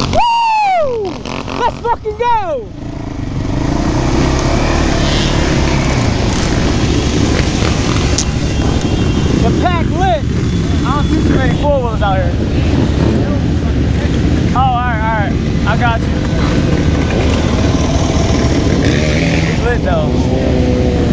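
A quad bike engine rumbles up close.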